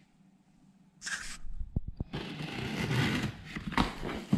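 Scissors slice through packing tape on a cardboard box.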